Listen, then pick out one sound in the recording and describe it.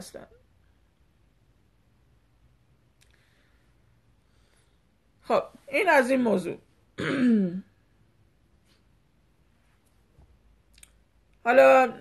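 A middle-aged woman speaks close to a microphone in short, calm phrases with pauses.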